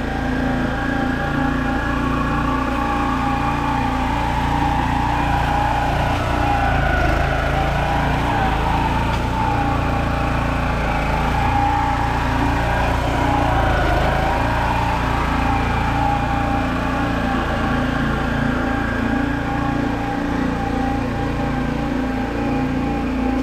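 A small engine on a ride-on lawn roller chugs steadily, growing louder as it comes near and fading as it moves away.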